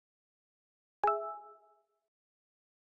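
A game's interface chimes with a short tone.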